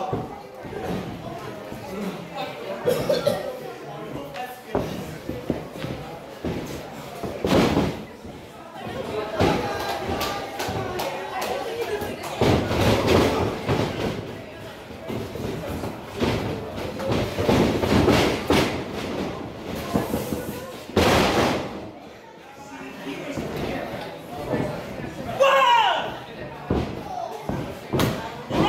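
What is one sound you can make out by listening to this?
A small crowd cheers and shouts in an echoing hall.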